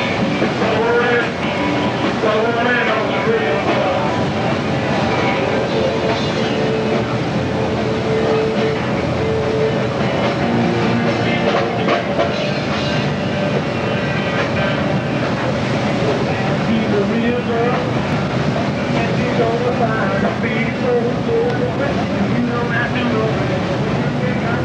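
Sea water rushes and churns loudly against a ship's hull.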